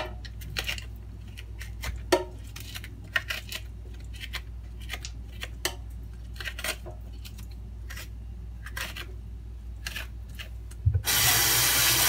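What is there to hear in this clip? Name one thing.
A peeler scrapes the skin off a fruit with soft, quick scratches.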